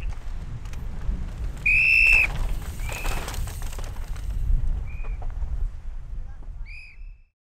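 A bike's chain and frame rattle over bumps.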